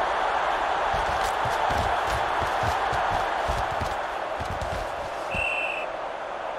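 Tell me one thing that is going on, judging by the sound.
Football players' pads clash and thud.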